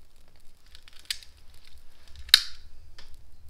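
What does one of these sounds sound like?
A lighter clicks as it is lit.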